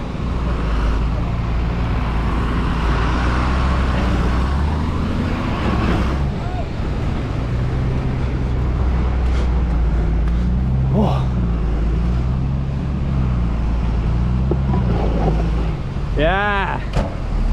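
A bus engine rumbles and labours steadily.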